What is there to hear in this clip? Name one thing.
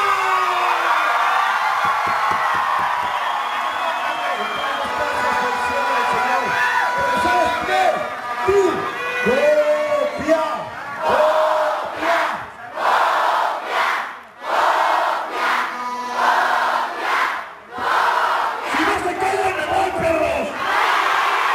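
A man shouts with animation into a microphone, heard over loudspeakers in a large echoing hall.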